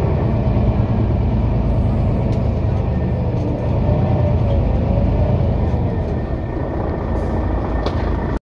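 A tram rumbles steadily along the tracks.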